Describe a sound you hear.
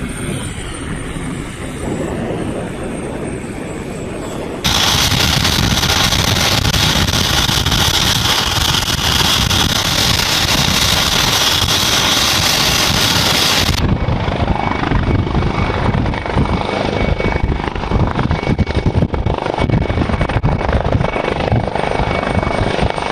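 Helicopter rotors thump loudly and steadily.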